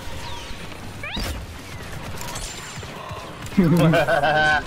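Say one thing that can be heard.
Blaster shots zap in quick bursts.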